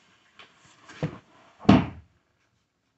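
Hard plastic parts knock together close by.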